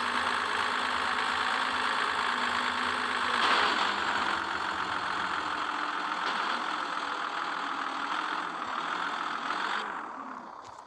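A simulated truck engine drones while cruising.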